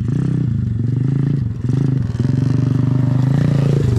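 A small dirt bike approaches.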